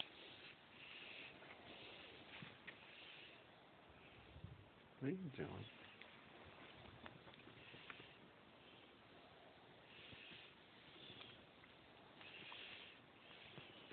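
Fabric rustles softly as a hand strokes a pet rat on a blanket.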